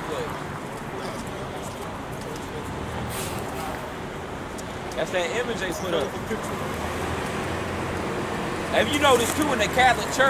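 City traffic hums in the background.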